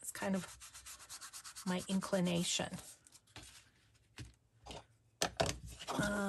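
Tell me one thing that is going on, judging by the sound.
A small ink dauber taps rapidly on paper.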